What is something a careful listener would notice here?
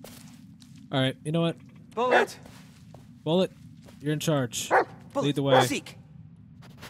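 A dog barks sharply several times nearby.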